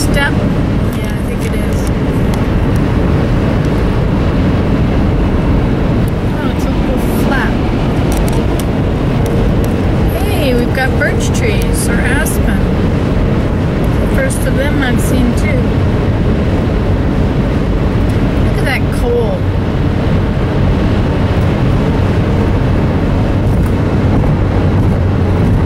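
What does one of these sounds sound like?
Road noise rumbles steadily inside a moving car on a highway.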